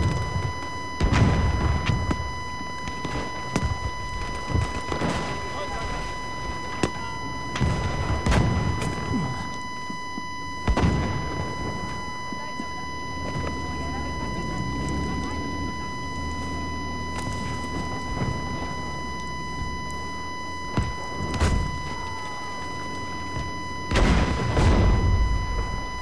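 Rifle shots bang loudly, one at a time.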